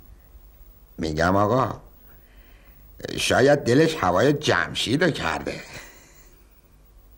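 A middle-aged man speaks with amusement, close by.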